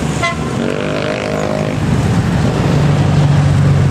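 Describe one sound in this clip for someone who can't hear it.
Several heavy trucks grind uphill with deep engine roars.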